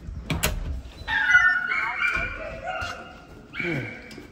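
A dog whines.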